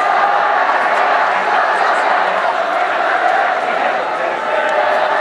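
A crowd cheers and shouts from the stands.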